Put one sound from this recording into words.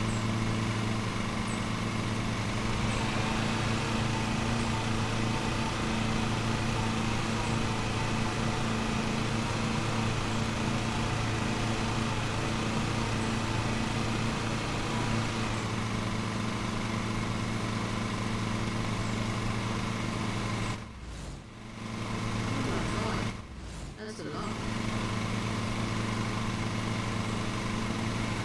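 A lawn mower engine hums steadily and briefly cuts out twice.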